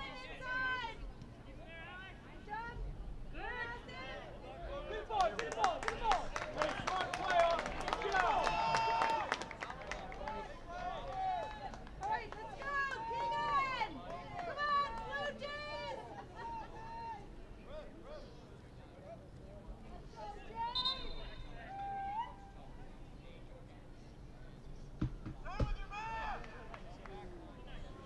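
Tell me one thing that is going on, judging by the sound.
Young players shout to each other outdoors across an open field.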